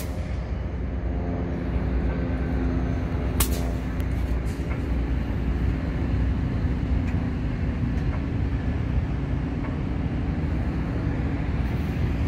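A diesel locomotive engine idles with a deep, steady hum nearby.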